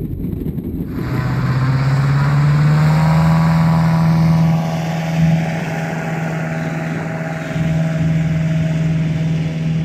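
A small propeller plane's engine drones steadily nearby.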